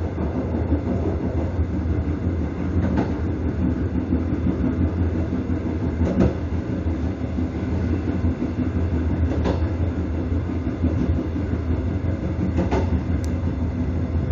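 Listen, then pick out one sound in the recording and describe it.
A train rumbles as it rolls along the rails.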